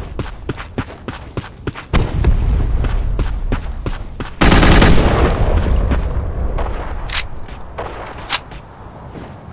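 A rifle clicks and rattles as it is handled.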